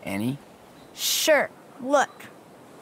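A young man calls out.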